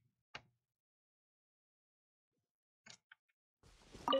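A man speaks briefly and quietly into a close microphone.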